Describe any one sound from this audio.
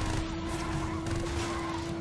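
A flame bursts with a whooshing roar.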